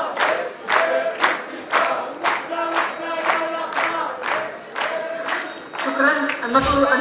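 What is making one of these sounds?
A crowd claps along in steady rhythm.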